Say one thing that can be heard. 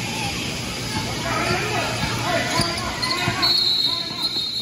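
Voices murmur and call out in a large echoing gym.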